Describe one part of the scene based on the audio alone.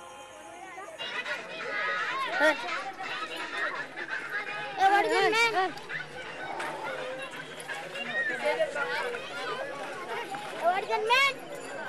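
A group of men and children talk and call out nearby outdoors.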